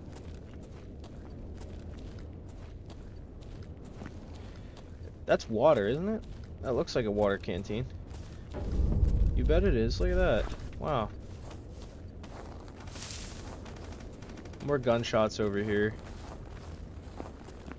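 Footsteps crunch on snowy ground at a steady walking pace.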